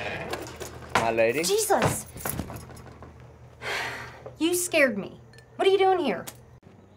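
A young woman speaks nearby, slightly out of breath.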